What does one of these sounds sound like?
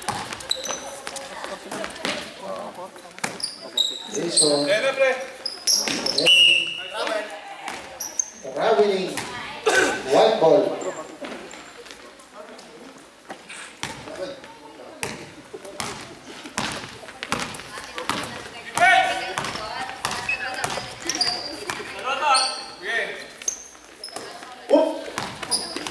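A basketball bounces on a wooden floor in a large echoing hall.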